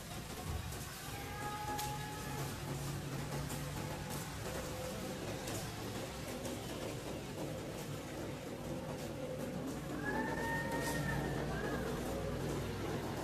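A young monkey gives short high squeals.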